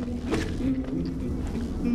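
Foliage crunches and scatters as a small creature slashes through it.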